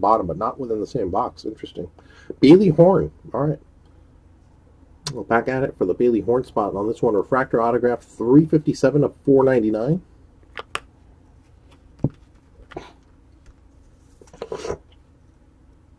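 Cardboard trading cards rustle and slide against each other in hands.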